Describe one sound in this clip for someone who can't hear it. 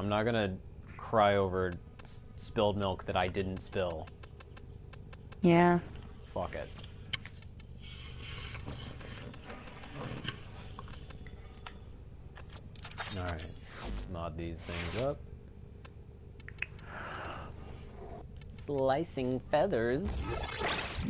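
Short electronic clicks tick as menu options are browsed.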